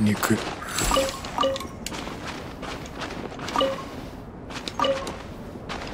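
Chiming tones ring out as items are picked up.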